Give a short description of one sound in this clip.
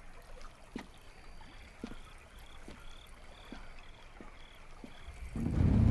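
Footsteps tap slowly on a wooden floor.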